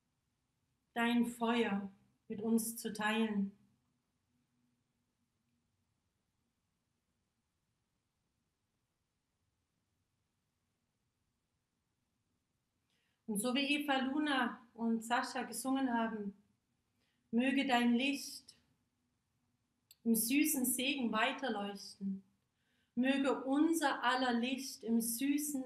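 A woman speaks calmly and softly, close by.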